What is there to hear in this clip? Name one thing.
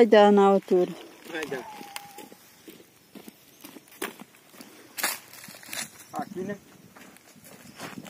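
Footsteps crunch on dry earth.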